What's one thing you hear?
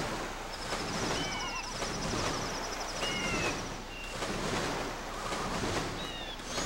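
Water splashes and swishes steadily as a swimmer paddles.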